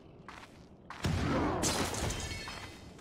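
A large creature roars.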